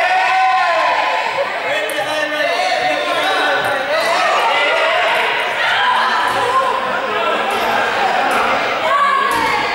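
Many teenagers chatter and call out at once in a large echoing hall.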